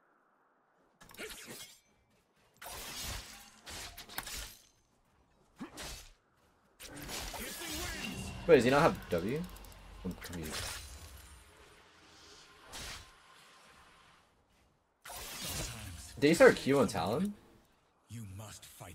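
Game battle effects clash, zap and whoosh in short bursts.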